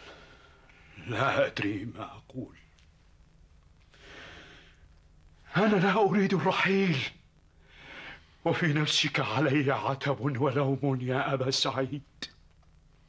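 An older man answers in a low, grave voice.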